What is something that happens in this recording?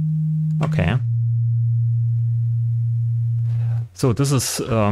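A synthesizer holds a steady low buzzing tone.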